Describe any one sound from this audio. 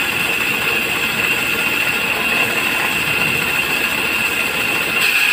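A motor hums and belts spin loudly throughout.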